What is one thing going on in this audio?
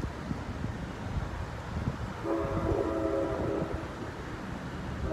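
Traffic rumbles steadily nearby outdoors.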